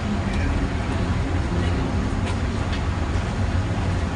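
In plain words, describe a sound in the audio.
A bus engine rumbles nearby as the bus pulls away.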